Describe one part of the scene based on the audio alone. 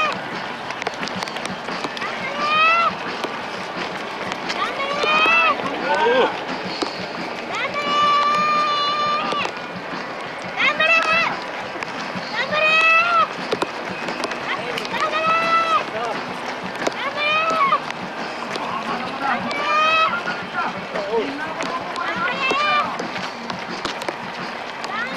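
Many runners' footsteps patter on a paved road.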